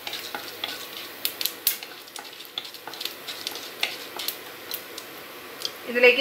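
A wooden spatula scrapes and taps against a pan.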